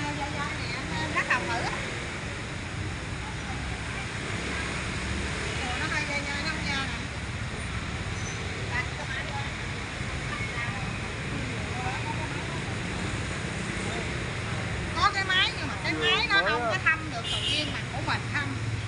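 A woman talks cheerfully nearby.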